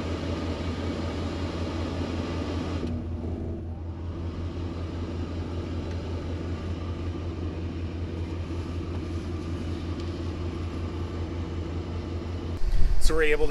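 A heater runs with a steady low hum.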